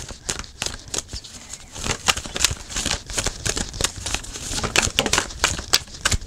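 Playing cards are shuffled with quick, light riffling clicks.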